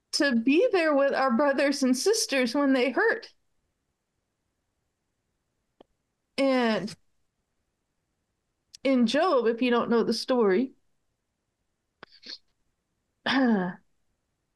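A middle-aged woman speaks calmly over an online call, in short bursts.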